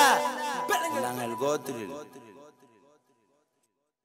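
A young man raps, his voice echoing and fading away.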